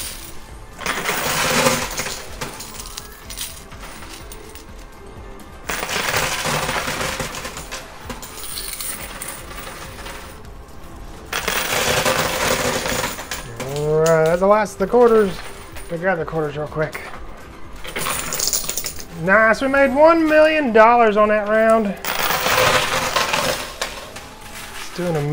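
Coins clatter and jingle as they drop and slide in a coin machine.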